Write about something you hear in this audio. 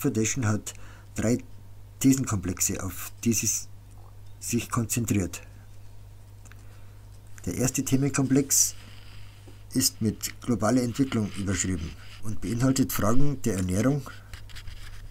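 A man reads aloud calmly into a microphone, close by.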